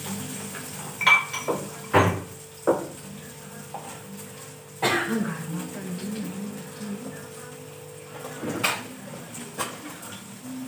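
Metal utensils knock and clatter against pots and bowls.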